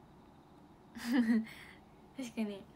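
A young woman speaks brightly close to a phone microphone.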